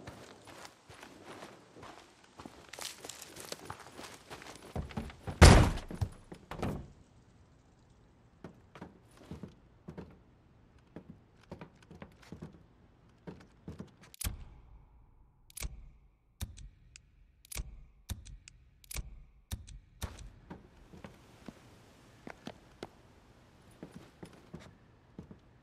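Footsteps thud on grass and then on a wooden floor.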